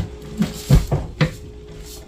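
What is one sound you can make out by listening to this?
Tortillas are patted and pressed by hand.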